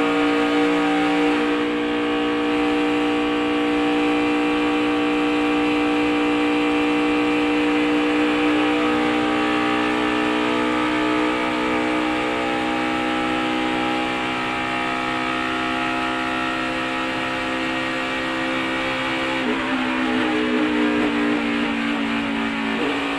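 Wind rushes past a fast car.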